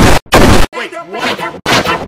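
A man shouts loudly and close by.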